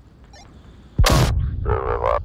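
A stun grenade bursts with a loud bang.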